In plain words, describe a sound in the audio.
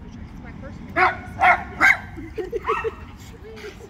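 A dog barks loudly several times.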